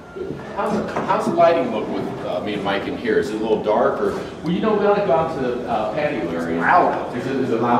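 A second man speaks loudly close by.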